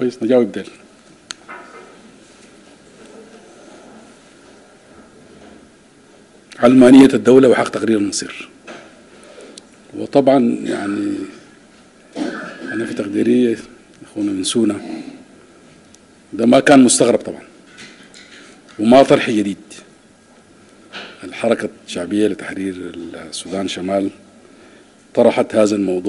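A middle-aged man speaks calmly into microphones, with pauses between phrases.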